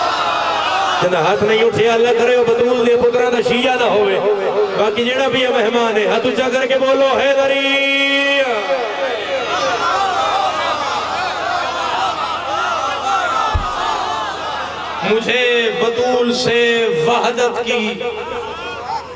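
A young man chants in a drawn-out singing voice through a microphone.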